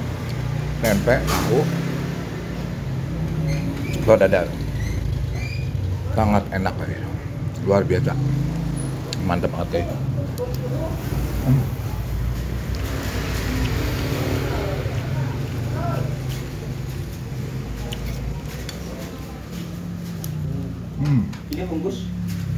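A metal spoon scrapes and clinks against a plate.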